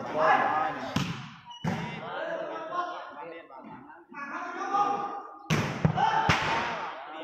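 A ball is kicked with sharp thumps.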